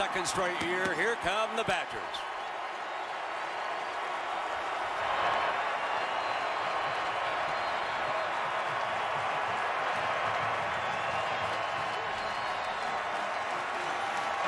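A huge stadium crowd cheers and roars loudly outdoors.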